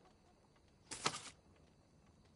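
A paper page turns with a soft rustle.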